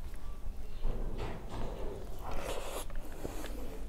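A woman chews a mouthful of food close to a clip-on microphone.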